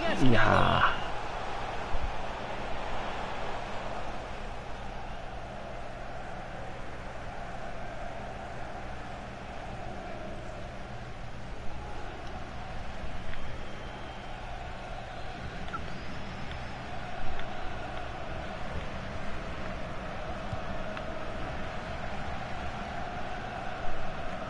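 A stadium crowd roars and murmurs steadily throughout.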